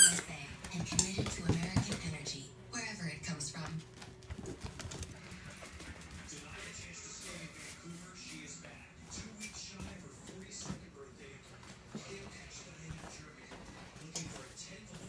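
A puppy's claws click and patter on a hard floor.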